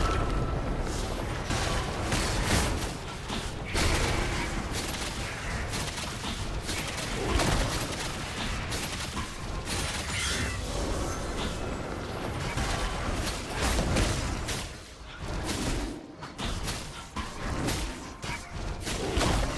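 Magical blasts and strikes crackle and thump in quick bursts.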